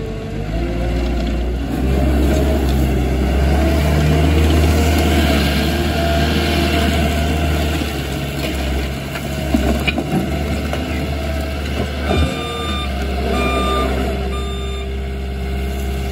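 Steel tracks clank and crunch over gravel.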